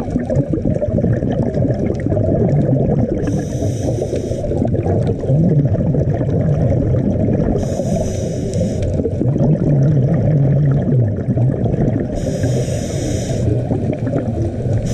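A low muffled rumble of moving water fills the background underwater.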